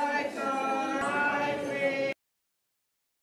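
A woman sings through a microphone and loudspeaker.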